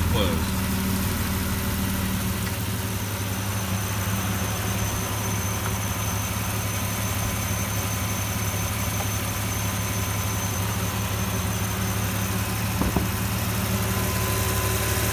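A car engine idles steadily with a low hum close by.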